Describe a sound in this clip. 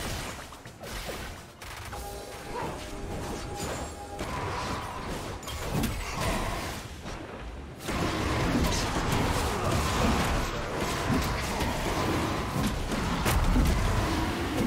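Spells crackle and explode during a video game battle.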